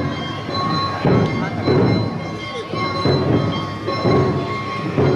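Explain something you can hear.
A crowd of dancers chants loudly in rhythm outdoors.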